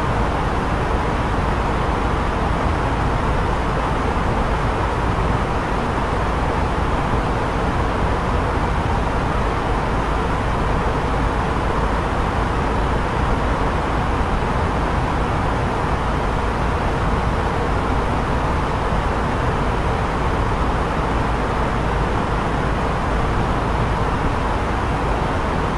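Jet engines roar steadily, heard from inside the cockpit.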